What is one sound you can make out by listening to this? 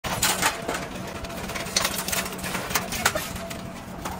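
Scrap metal clanks as men unload a truck.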